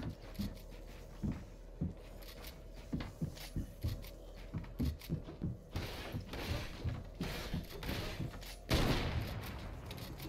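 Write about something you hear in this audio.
Wooden walls and ramps snap into place with quick knocking thuds.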